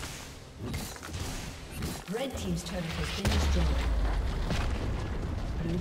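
Video game combat effects crackle and burst.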